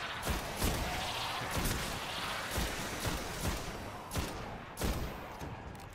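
Gunshots fire in quick bursts with booming blasts.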